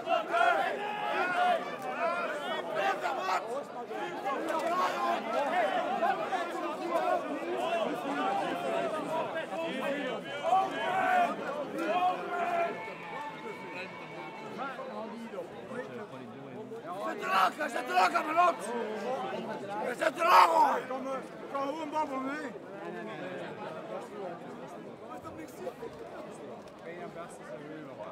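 A large crowd of men and women chatters and shouts close by.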